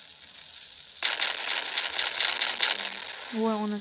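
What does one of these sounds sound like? An explosion goes off with a loud blast.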